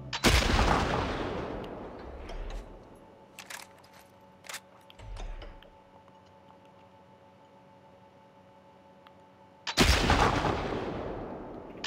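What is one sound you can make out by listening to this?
A rifle fires with a loud crack that rolls away in a long echo.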